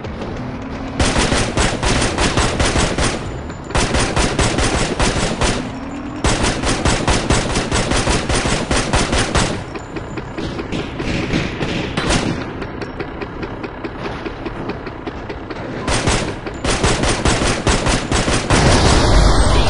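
A pistol fires in rapid bursts of shots.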